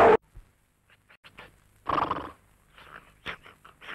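A woman gasps and moans softly.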